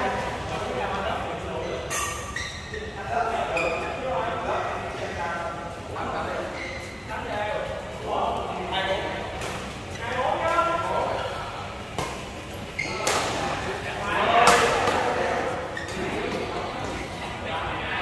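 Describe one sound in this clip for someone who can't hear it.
Young men talk and call out across a large echoing hall.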